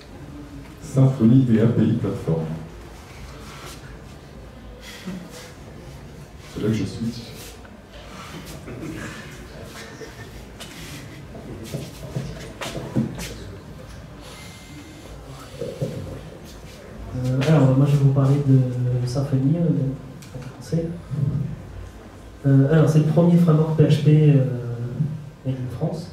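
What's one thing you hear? A young man speaks calmly into a microphone, heard in a room with some echo.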